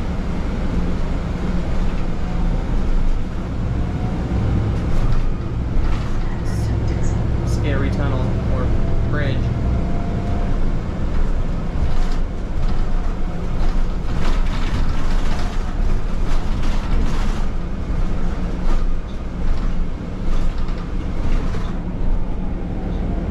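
A bus engine rumbles steadily while the bus drives.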